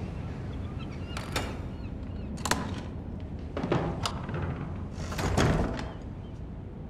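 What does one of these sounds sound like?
A wooden door creaks open and knocks shut.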